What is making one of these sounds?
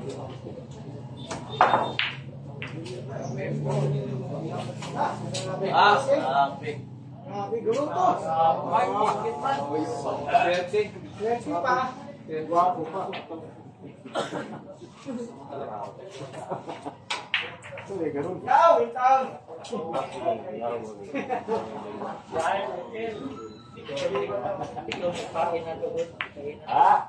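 Pool balls knock and click together.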